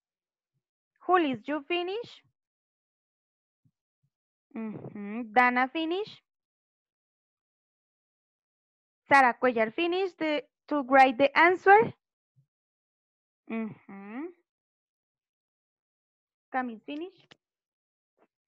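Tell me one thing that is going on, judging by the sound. A woman speaks clearly and slowly through an online call, in short phrases with pauses.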